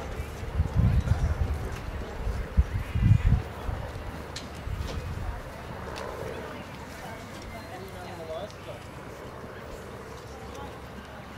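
A horse's hooves thud softly on grass as it trots.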